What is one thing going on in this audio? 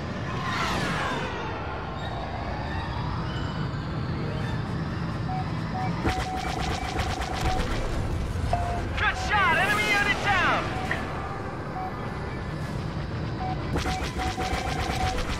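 A starfighter's engines roar steadily.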